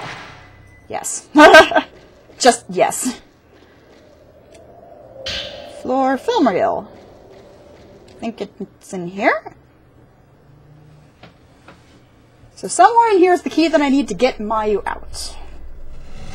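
A young woman talks animatedly into a nearby microphone.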